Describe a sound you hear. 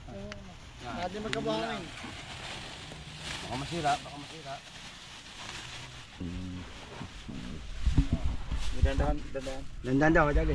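A plastic sack rustles as it is handled.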